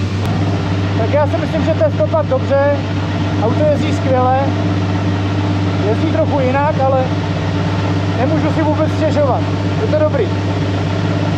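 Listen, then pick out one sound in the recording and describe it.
A young man speaks with animation from close by, muffled by a helmet.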